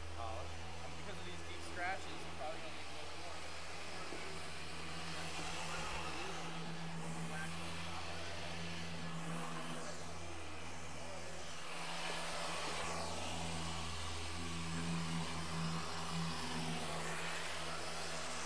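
A machine polisher hums steadily.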